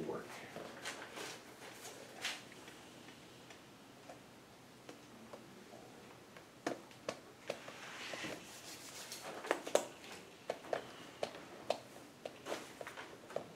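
Paper rustles and taps on a table.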